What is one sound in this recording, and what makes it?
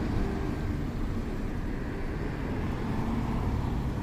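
A car passes close by.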